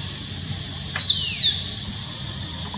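A young monkey gives a short high squeal.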